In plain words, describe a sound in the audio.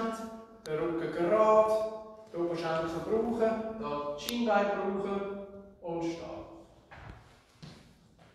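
A man speaks with animation, close by in an echoing room.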